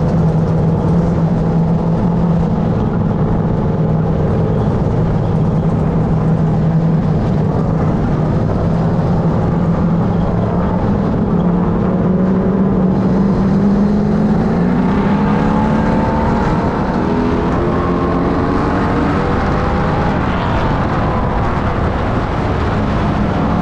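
A race car engine roars loudly up close, its pitch rising and falling as it accelerates.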